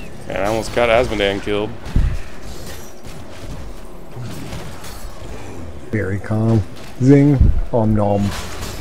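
Spells and blows crackle and thud in a game battle.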